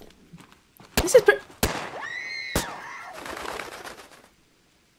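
A young woman gasps in surprise.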